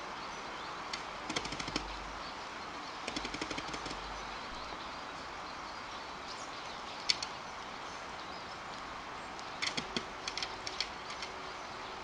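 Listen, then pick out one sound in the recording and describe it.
A plastic bucket rattles and knocks on the ground.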